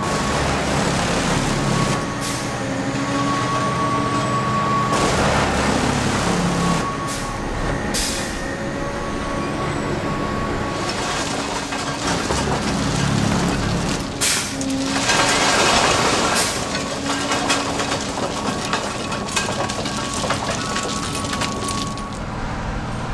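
A heavy track machine's engine rumbles and whines steadily close by.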